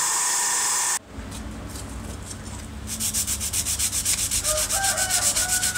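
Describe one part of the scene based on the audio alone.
A cloth rubs back and forth over a metal plate.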